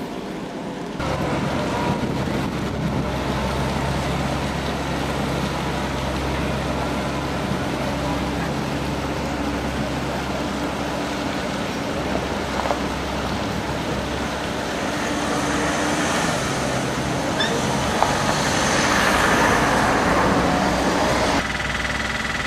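A tram rumbles and squeals along its rails nearby.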